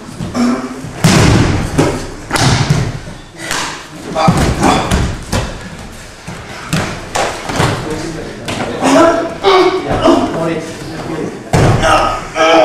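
Bodies thud heavily onto a mat.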